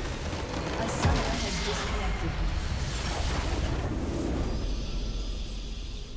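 A structure shatters with a loud magical burst.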